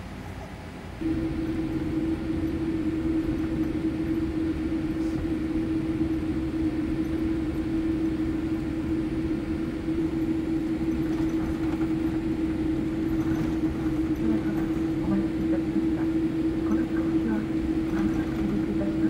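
Jet engines roar louder with a steady droning tone.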